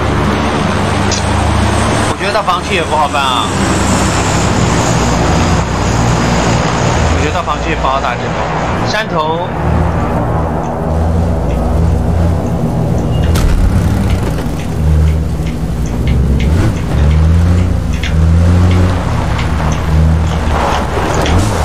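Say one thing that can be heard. A car engine rumbles steadily as the car drives over rough ground.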